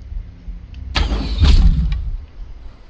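A bowstring twangs as an arrow is shot.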